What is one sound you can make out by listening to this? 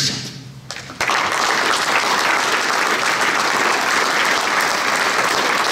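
An audience applauds steadily in a room.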